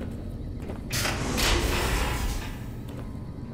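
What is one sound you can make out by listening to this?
A heavy metal door grinds and hisses open.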